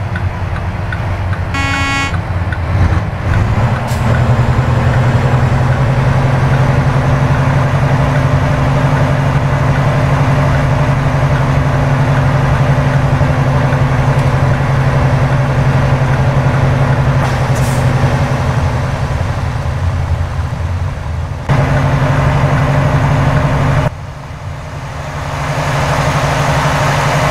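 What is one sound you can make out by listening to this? A truck's diesel engine rumbles steadily as it drives.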